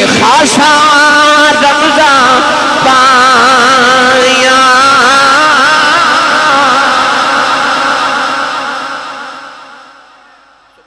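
A man chants loudly and melodiously into a microphone, heard through loudspeakers in an echoing hall.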